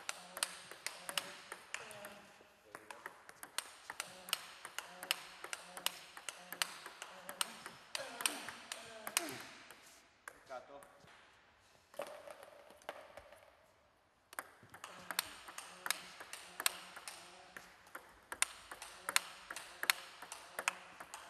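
A table tennis ball clicks rapidly back and forth on a table and paddles.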